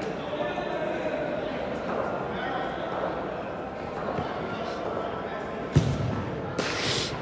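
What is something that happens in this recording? Young men's voices and shouts echo through a large indoor hall.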